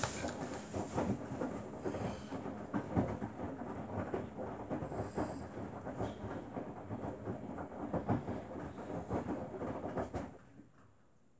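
Wet laundry tumbles and sloshes in the drum of a front-loading washing machine, then stops.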